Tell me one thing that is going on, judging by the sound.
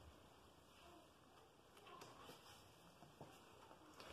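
A book page rustles as it is turned.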